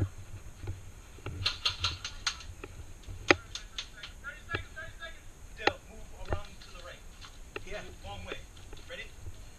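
Paintball guns pop in quick bursts outdoors.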